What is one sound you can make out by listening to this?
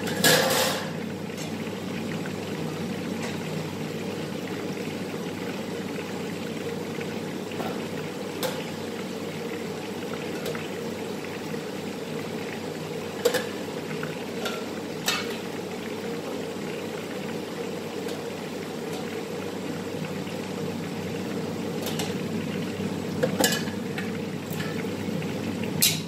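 A metal utensil clinks against a pan now and then.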